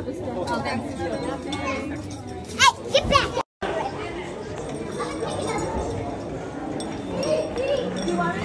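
A crowd of people chatters nearby in a large echoing room.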